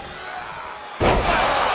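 A wrestler crashes down hard onto a wrestling ring.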